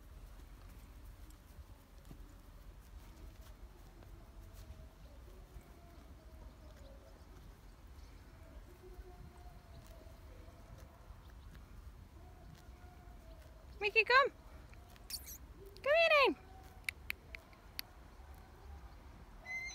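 A foal's hooves thud softly on grass.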